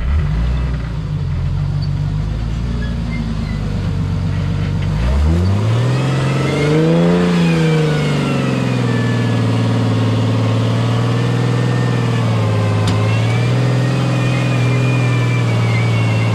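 An off-road engine idles low and then revs hard.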